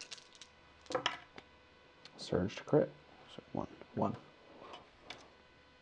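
Dice roll and clatter on a felt tray.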